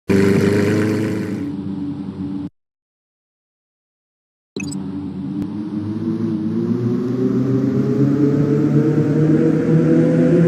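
A sports car engine revs and roars, rising in pitch as the car speeds up.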